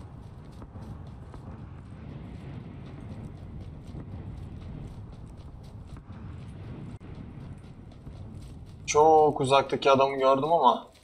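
Footsteps thud quickly over grass.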